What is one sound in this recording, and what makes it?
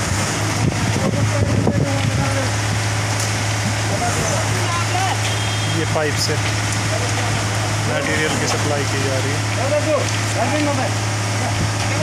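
Several men talk and call out outdoors.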